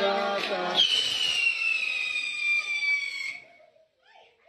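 A firework fountain hisses and whistles loudly.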